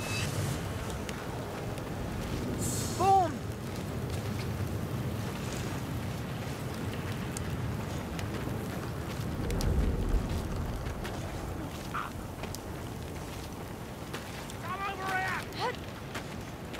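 Footsteps tread steadily over rough ground.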